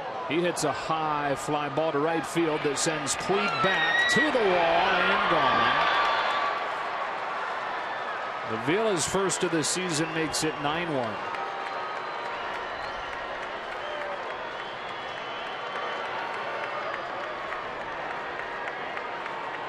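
A large stadium crowd cheers and roars.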